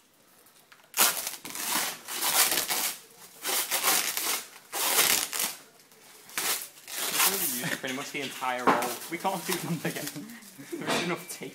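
Sticky tape rips loudly as it is pulled off in long strips.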